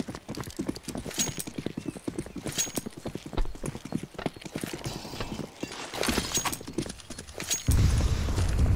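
Quick footsteps patter on hard stone.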